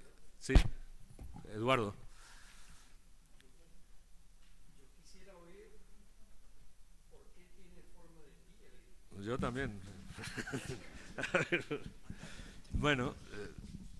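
An older man speaks calmly into a microphone.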